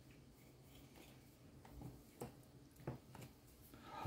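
Coffee grounds are pressed down with a tamper.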